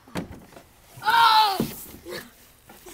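A young boy squeals while sliding down a plastic slide.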